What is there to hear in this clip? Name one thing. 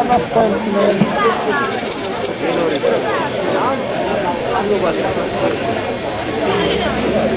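A band plays guitars loudly through loudspeakers outdoors.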